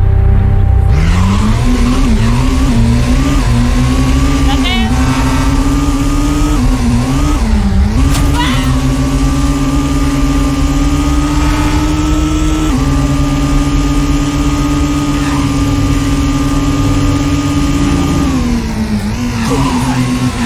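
Tyres hiss on the road at speed.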